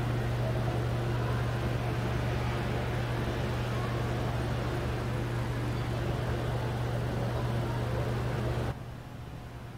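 A car engine idles with a steady low hum.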